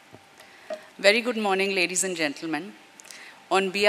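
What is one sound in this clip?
A woman speaks calmly into a microphone over a loudspeaker in a large room.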